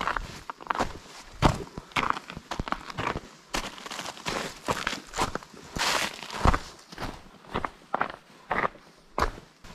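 Footsteps crunch on icy snow and gravel.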